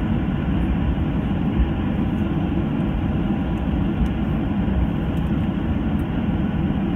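A jet engine roars steadily outside the cabin of a taxiing airliner.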